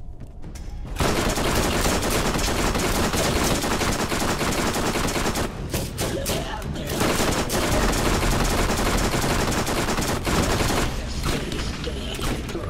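A gun fires rapid bursts.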